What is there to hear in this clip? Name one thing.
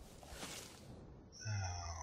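A bowstring creaks as it is drawn back.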